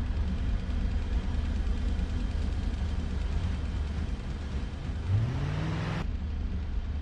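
A car engine hums steadily while driving past.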